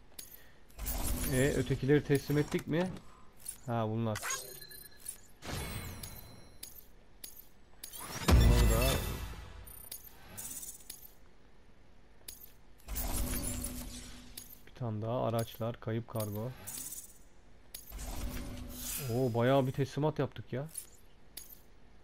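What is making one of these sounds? Electronic menu chimes and whooshes sound in short bursts.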